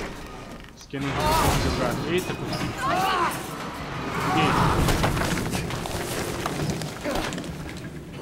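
A metal scaffold creaks and crashes down a rock face with a loud rumble.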